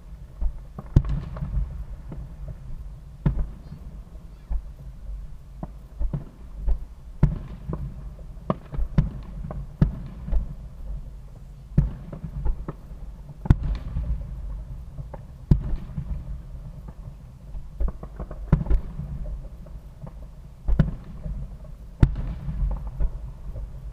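Fireworks burst with sharp distant bangs that echo and rumble.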